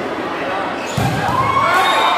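A volleyball is spiked with a sharp slap.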